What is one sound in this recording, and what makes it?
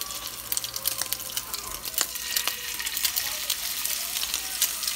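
Onion slices tap softly against a frying pan.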